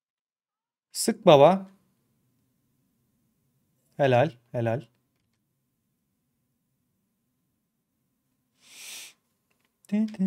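A man speaks in short bursts, close to a microphone.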